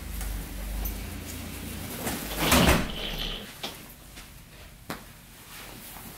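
A rolling suitcase rumbles across the floor.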